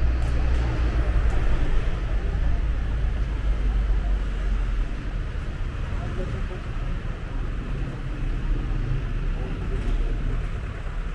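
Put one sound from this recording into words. Traffic hums steadily in the street nearby.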